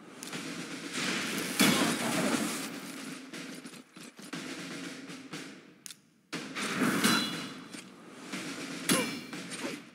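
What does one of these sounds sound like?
Swords clash and magic effects whoosh in a battle game.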